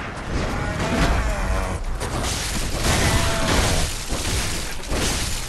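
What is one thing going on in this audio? A blade swings and strikes flesh with heavy thuds.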